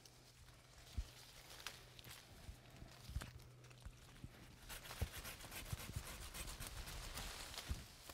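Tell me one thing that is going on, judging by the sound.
Pruning shears snip through branches.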